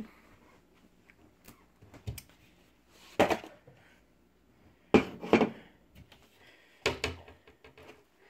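A cardboard box rustles and thumps as it is handled.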